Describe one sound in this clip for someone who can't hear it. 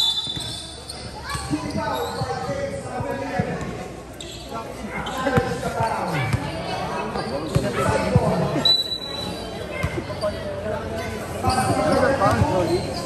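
Several young men talk and call out close by, with animation.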